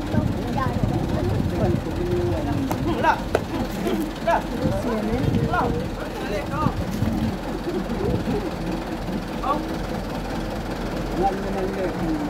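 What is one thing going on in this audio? Several young men shout and talk excitedly nearby, outdoors.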